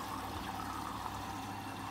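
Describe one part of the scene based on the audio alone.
Laundry tumbles and swishes inside a washing machine drum.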